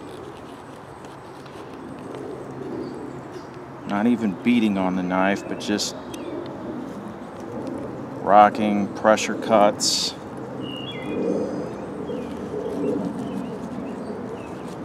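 A knife scrapes and shaves a wooden stick.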